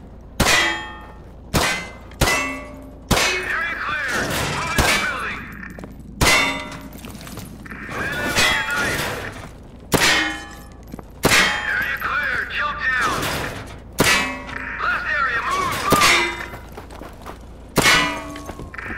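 Gunshots crack one at a time, with sharp metallic pings after them.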